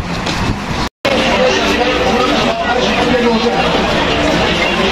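A large crowd murmurs and chatters nearby.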